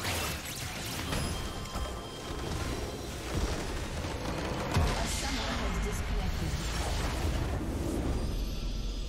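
Spell effects and weapon strikes crackle and clash in a game battle.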